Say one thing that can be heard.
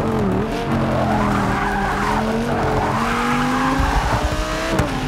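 Tyres screech through a corner.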